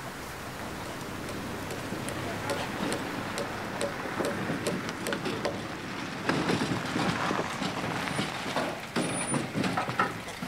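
A truck engine runs as the truck drives slowly over gravel and stops.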